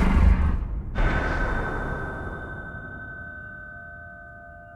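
A bright shimmering chime rings out and slowly fades.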